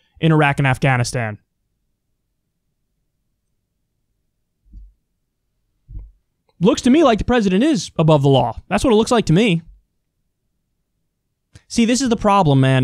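A man speaks with animation, close into a microphone, with long pauses.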